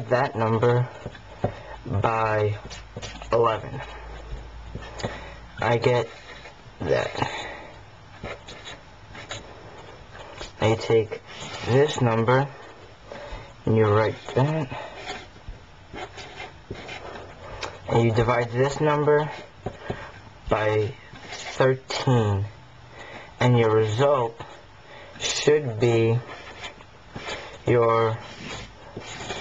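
A felt-tip marker squeaks and scratches on paper.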